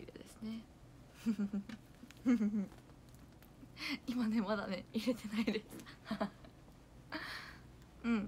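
Paper rustles in a young woman's hands.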